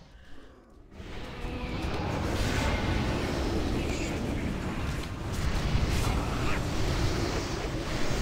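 Spell blasts and clashing fight sounds rumble and crackle.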